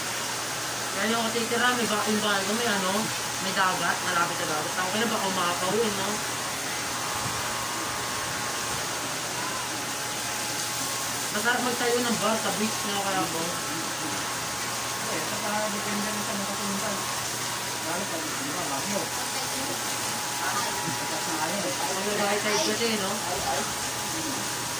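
A teenage boy talks casually nearby.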